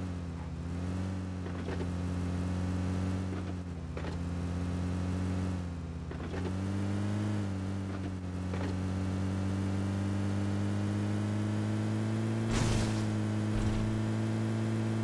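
A vehicle engine hums steadily and shifts pitch as it drives over bumpy ground.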